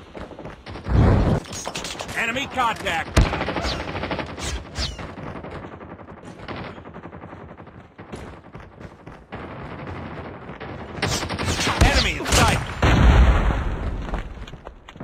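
Gunshots crack loudly in bursts.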